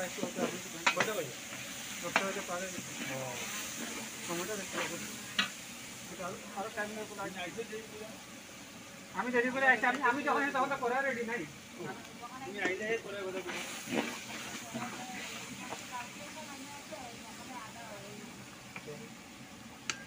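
A metal spatula scrapes and clanks against a wok.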